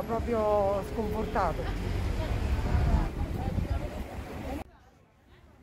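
A woman speaks close by.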